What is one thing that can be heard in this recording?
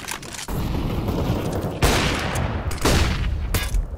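A flash grenade goes off with a loud bang.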